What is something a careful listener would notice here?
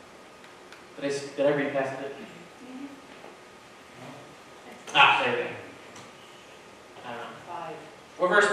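A young man speaks calmly through a microphone in a large echoing hall, with pauses between phrases.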